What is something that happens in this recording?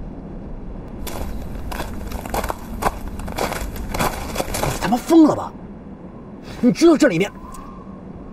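A young man speaks with agitation, close by.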